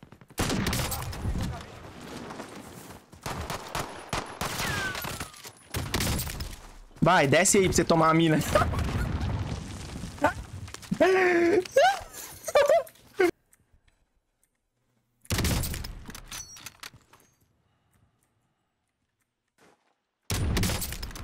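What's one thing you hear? Gunshots crack from a game.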